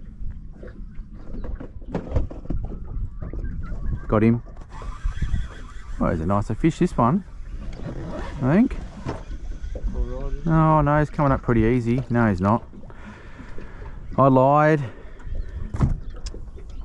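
Water laps gently against the hull of a small boat.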